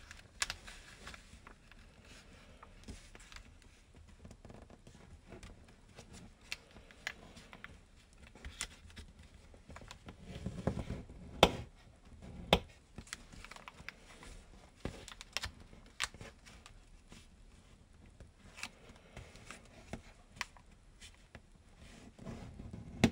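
Paper crinkles and rustles as it is folded by hand.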